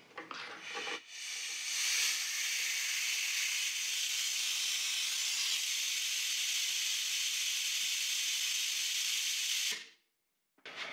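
Compressed air hisses steadily from a valve.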